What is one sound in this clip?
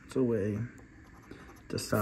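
A coin scrapes across a scratch card.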